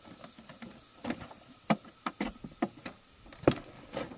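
A wicker basket creaks and knocks.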